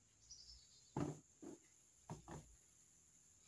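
Metal knocks and clanks as a chainsaw is handled.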